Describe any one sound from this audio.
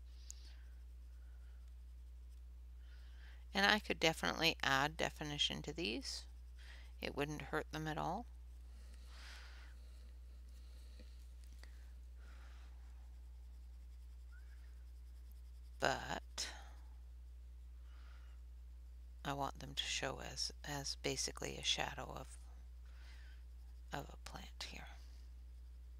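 A coloured pencil scratches softly on paper.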